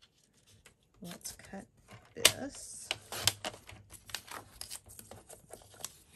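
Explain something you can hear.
A blade slides along a paper trimmer, slicing through card.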